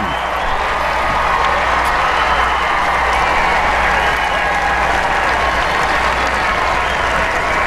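A large crowd cheers and applauds loudly outdoors.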